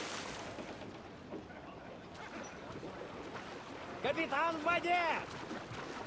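Arms splash through water in swimming strokes.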